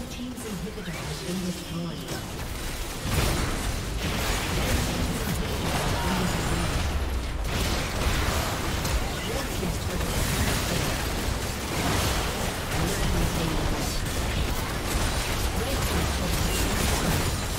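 Video game spell effects crackle, whoosh and boom in a busy battle.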